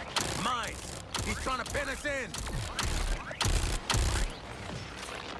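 A gun fires rapid, loud shots.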